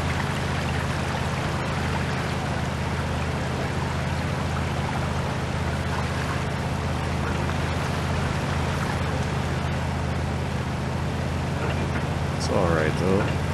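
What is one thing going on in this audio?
A vehicle engine drones steadily.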